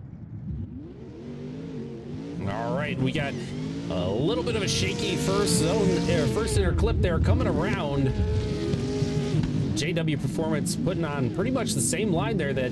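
Tyres screech and squeal as cars slide through corners.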